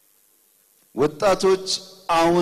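A man speaks loudly and with emphasis into a microphone over loudspeakers.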